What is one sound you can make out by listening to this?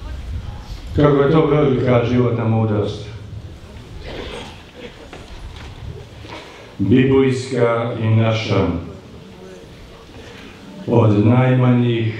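An elderly man speaks slowly and solemnly through a microphone.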